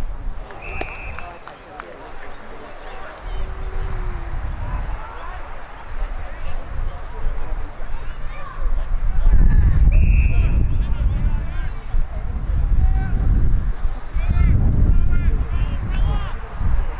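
Men shout and call out across the field.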